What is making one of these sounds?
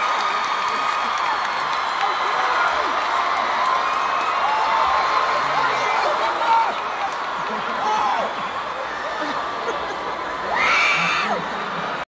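A large crowd screams and cheers loudly in a big echoing arena.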